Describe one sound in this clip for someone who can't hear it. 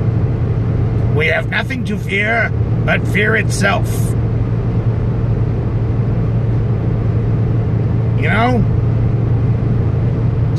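Tyres roll steadily on a smooth road.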